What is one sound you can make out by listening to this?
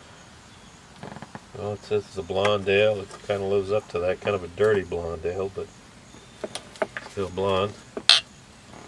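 An elderly man speaks calmly outdoors, close by.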